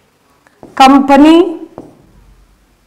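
A young woman speaks clearly into a close microphone.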